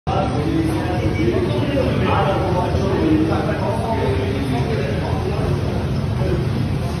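Exercise bikes whir steadily.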